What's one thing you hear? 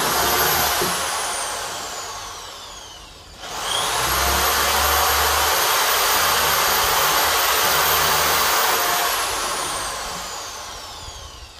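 An electric drill whirs at high speed, slowing down, then speeding up again and slowly winding down.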